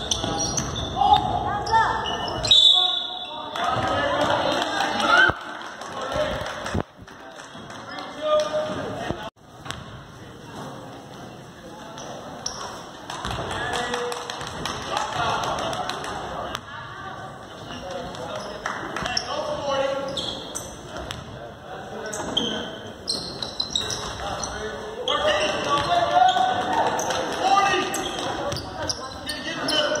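Spectators talk and call out in the stands.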